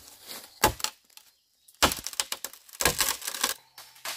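Dry leaves rustle and crunch underfoot.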